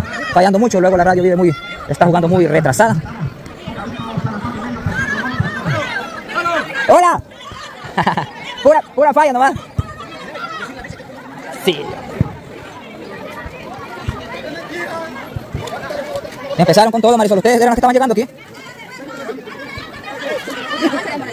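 A crowd of young people chatters outdoors.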